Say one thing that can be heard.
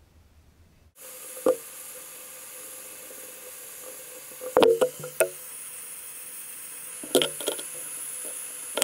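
A gas torch roars with a steady hiss.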